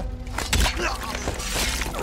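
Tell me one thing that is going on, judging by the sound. A man cries out in pain close by.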